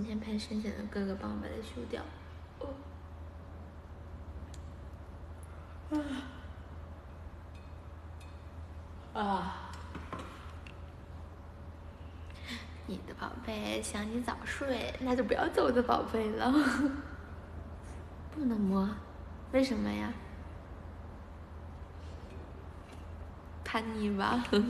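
A young woman talks playfully and close by, in bursts.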